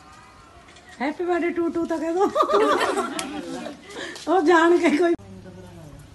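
A young woman and men sing together loudly nearby.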